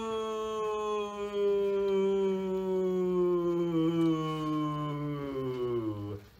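A young man holds a long, loud sung vowel that slowly slides down in pitch, close by.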